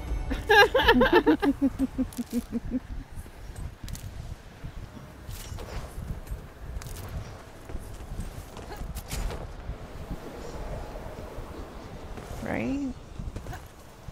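Quick footsteps thud on soft sand.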